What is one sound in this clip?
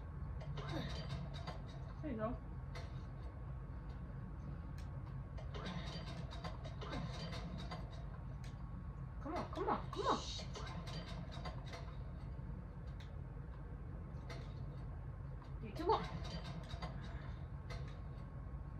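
Muffled scuffling and fighting sounds play from a television loudspeaker.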